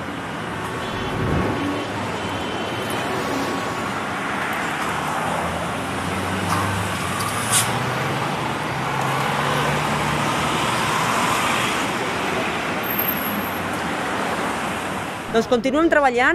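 Car traffic rumbles and hisses past on a street.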